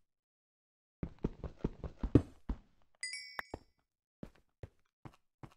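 A pickaxe chips at stone with quick knocks.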